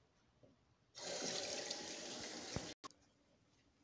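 Water runs from a tap in a steady rush, then stops.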